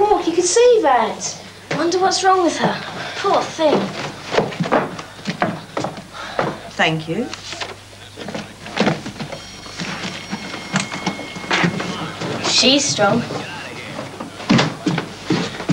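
A girl talks with animation.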